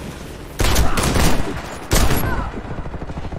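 Gunshots fire loudly in quick bursts.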